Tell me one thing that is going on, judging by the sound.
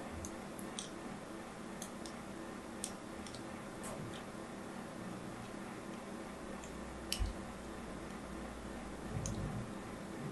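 A blade scrapes and scores soft soap with crisp little crackles.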